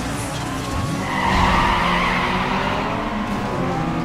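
Tyres screech as cars skid.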